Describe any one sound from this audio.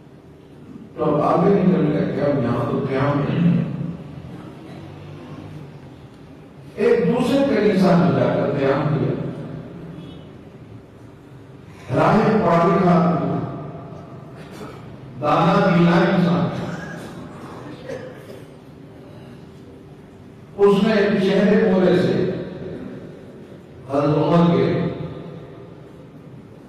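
An elderly man speaks slowly and emphatically into a microphone, in bursts with pauses, in an echoing room.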